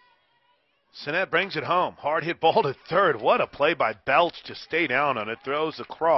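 A crowd of spectators cheers and shouts loudly.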